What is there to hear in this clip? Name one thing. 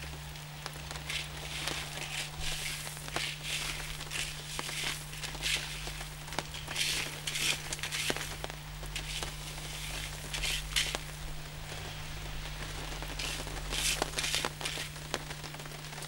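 A scoop scrapes and crunches through loose gravel.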